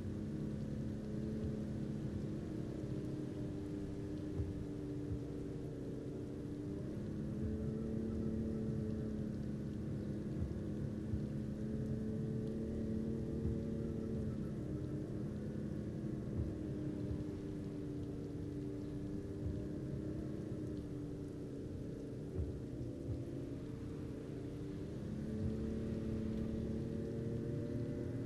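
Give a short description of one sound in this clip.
Tyres roll over a road surface.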